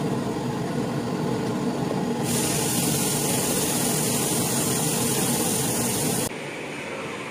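A spoon scrapes and stirs food in a metal pot.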